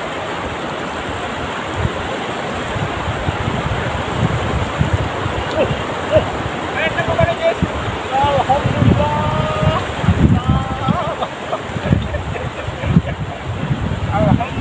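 Wind blows steadily across an open outdoor space.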